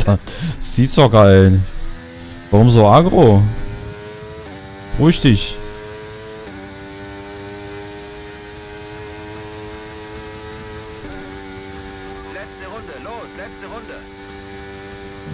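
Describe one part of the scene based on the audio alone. A racing car engine roars and revs up and down through its gears.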